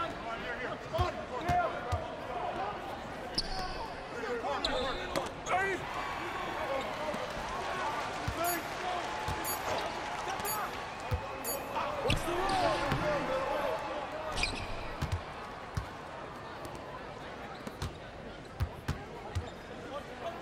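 A basketball bounces with dull thumps on the court.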